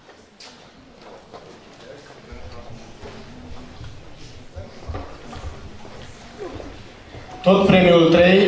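A man speaks into a microphone over a loudspeaker in a large hall.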